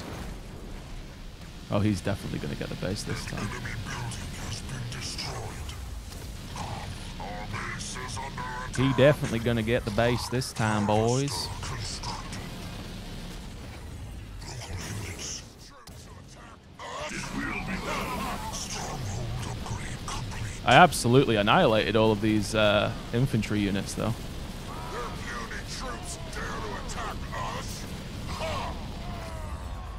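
Explosions and gunfire boom in a battle.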